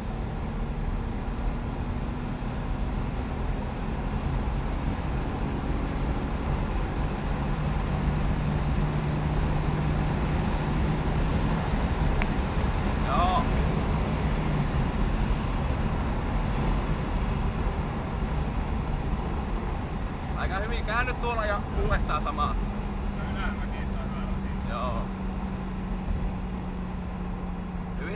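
Tyres rumble over a gravel road.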